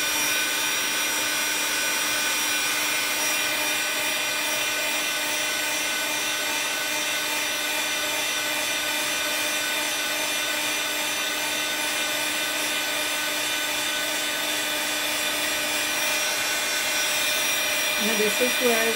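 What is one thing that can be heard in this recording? A heat gun blows and whirs steadily close by.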